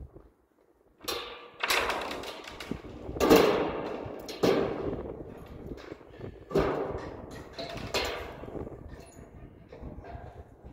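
Thin metal sheets bang and rattle against a metal pole, with a ringing echo.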